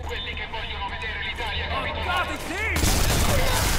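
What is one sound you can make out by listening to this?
A man talks into a headset microphone.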